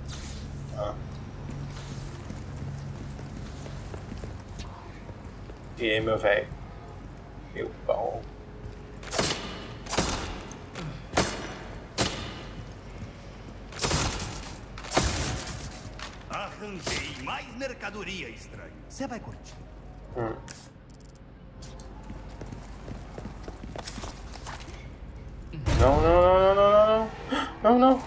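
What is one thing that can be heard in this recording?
A young man talks into a microphone with animation, close by.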